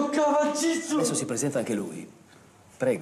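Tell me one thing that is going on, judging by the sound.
A middle-aged man speaks firmly, close by.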